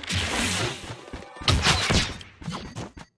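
A bright magical burst whooshes and shimmers.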